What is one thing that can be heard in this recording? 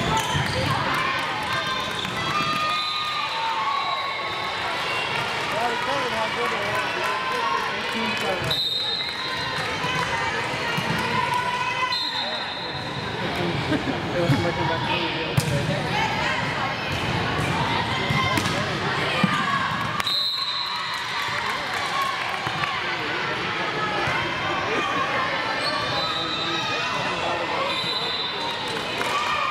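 Girls and young women call out and chatter in a large echoing hall.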